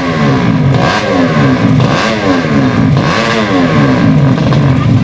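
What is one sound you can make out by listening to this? Motorcycle engines rev sharply in quick rising bursts.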